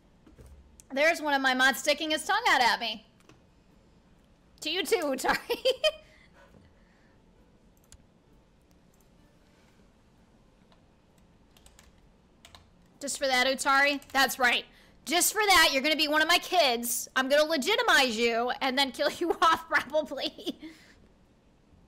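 A young woman talks with animation into a close microphone, in bursts with pauses.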